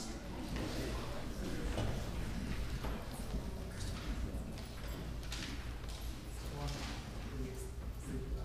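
A group of singers sings together in a large echoing hall.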